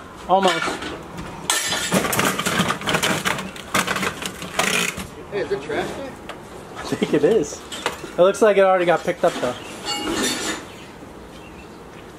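A heavy armchair scrapes and thumps as men drag it across grass.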